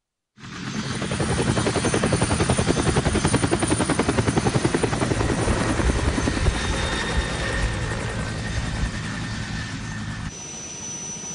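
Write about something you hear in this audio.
A helicopter's rotor chops loudly overhead.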